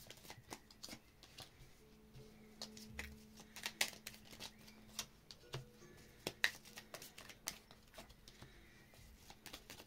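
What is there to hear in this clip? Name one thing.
Playing cards are laid down on a table with soft taps.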